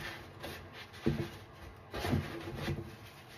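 Sponges thud softly against a plastic tub.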